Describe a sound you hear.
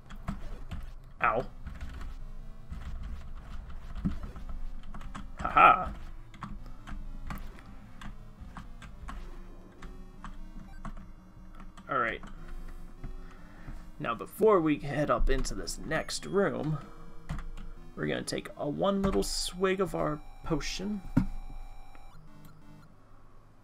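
Retro video game bleeps and chiptune effects play.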